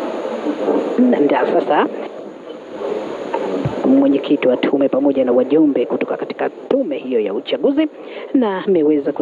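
Men talk with each other nearby.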